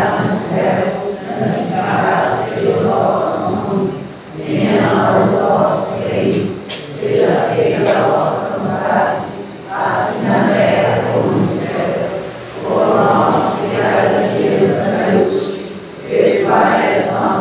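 A man plays an electric keyboard.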